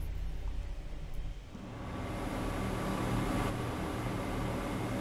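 Train wheels rumble on the track.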